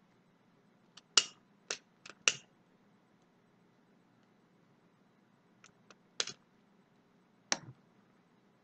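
A lighter clicks a few times.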